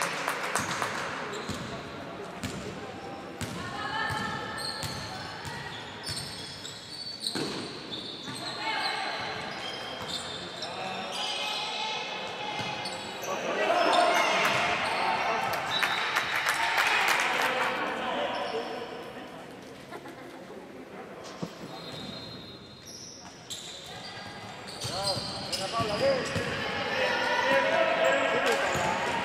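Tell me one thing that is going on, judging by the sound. Young players shout and call out during a game.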